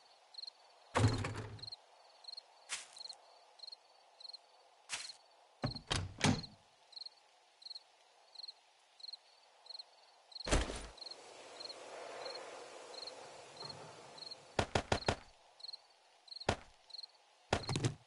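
Short game menu clicks sound now and then.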